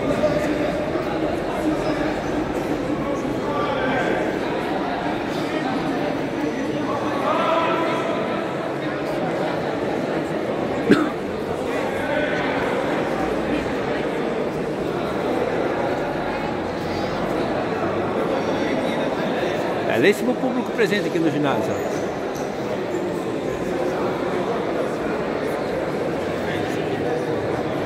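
A crowd of spectators chatters throughout, echoing in a large hall.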